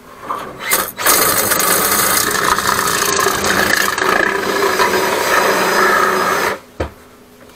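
A motor-driven drain cable spins with a loud, steady whirring rattle.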